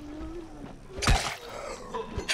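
A heavy blow lands with a wet, meaty thud.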